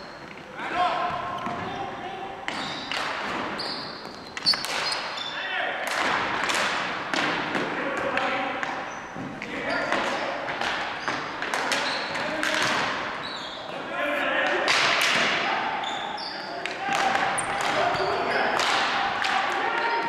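Ball hockey sticks clack and slap a ball on a hardwood floor in a large echoing gym.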